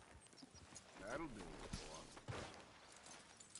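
A horse whinnies and snorts up close.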